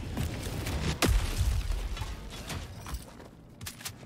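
A loud thud lands nearby with a deep rumble.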